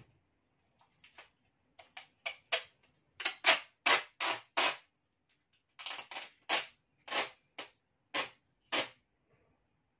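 Adhesive tape rips off a roll in short, sharp bursts.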